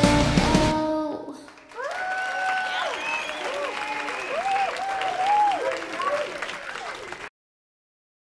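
A young woman sings softly and closely into a microphone.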